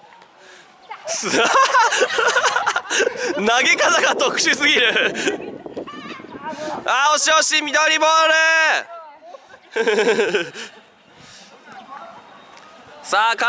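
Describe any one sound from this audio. Young women shout and call out loudly to each other outdoors.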